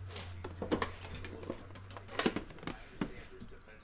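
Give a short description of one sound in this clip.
A box lid slides and taps on a table.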